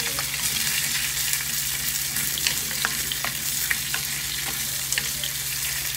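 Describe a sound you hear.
A wooden spoon scrapes and stirs food in a metal pan.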